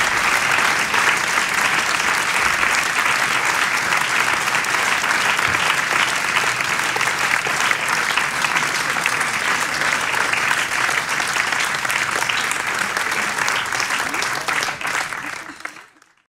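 A large crowd applauds loudly, then the applause fades away.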